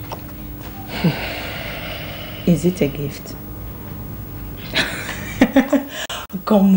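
A woman speaks softly and teasingly close by.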